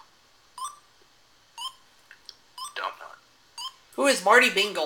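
A video game beeps once each second.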